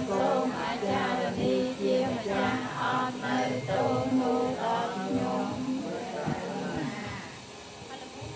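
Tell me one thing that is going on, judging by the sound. A group of men and women chant together in unison nearby.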